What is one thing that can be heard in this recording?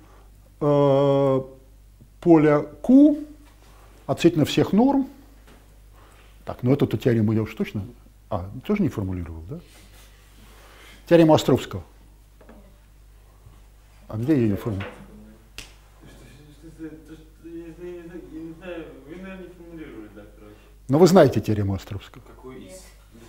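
An elderly man speaks in short bursts with long pauses, in a room with some echo.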